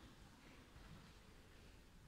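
A piano plays softly.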